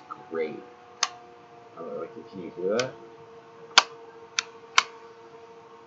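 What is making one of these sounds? A small plastic device clicks sharply in a man's hands.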